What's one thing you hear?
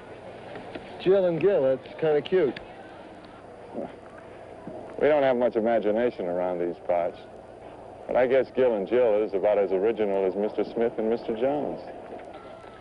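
A man speaks calmly outdoors, heard through an old, slightly hissy microphone.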